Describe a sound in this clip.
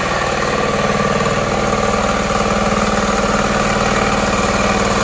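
A small diesel engine chugs loudly and steadily close by.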